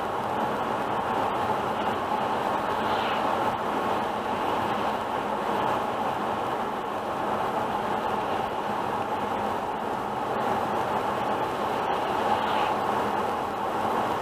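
Tyres roar steadily on a wet road as a car drives at speed.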